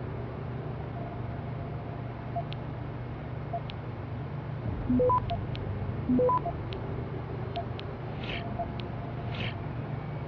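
Short electronic chimes ring out now and then.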